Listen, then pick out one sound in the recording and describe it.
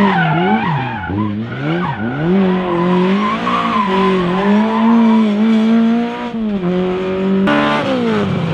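A rally car engine revs hard and roars.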